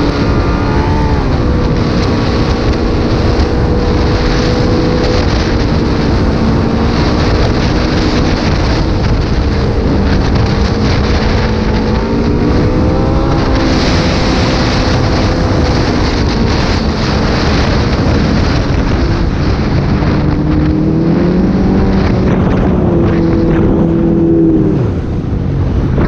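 A snowmobile engine roars up close, its pitch rising and falling with the throttle.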